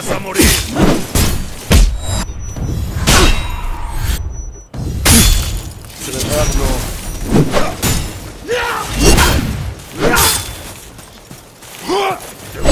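A man grunts and shouts with effort.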